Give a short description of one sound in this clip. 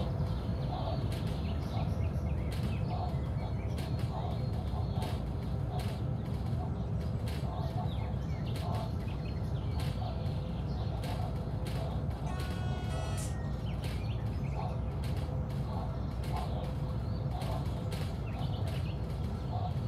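A train's wheels clatter rhythmically over rail joints.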